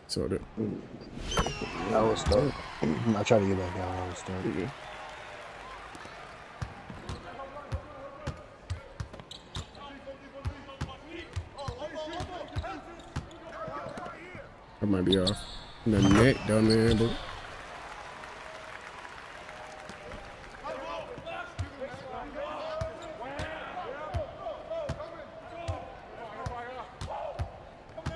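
Basketball shoes squeak on a hardwood court.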